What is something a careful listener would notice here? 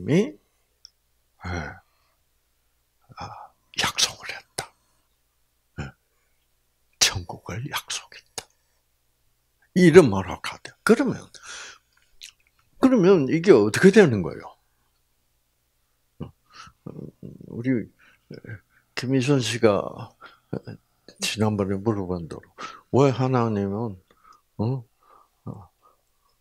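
An elderly man speaks calmly into a microphone, heard through a loudspeaker, with pauses.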